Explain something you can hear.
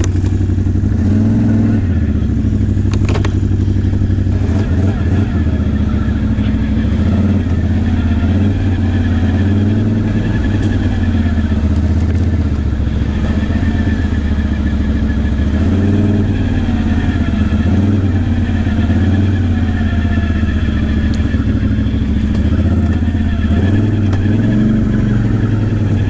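A quad bike's engine rumbles steadily, its pitch rising and falling with the throttle.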